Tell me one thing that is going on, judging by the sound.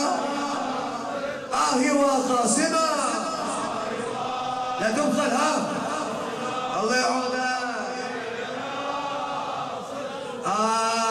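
A man chants a sung recitation through a microphone in a large echoing hall.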